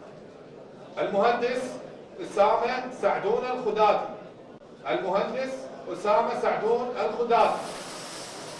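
A man reads out through a microphone in an echoing hall.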